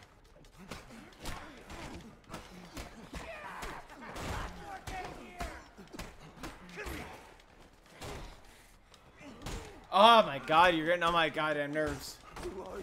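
Punches and blows land in a video game fight.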